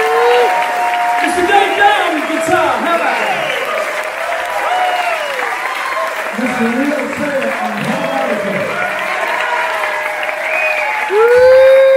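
A man speaks loudly into a microphone through loudspeakers in a large echoing hall.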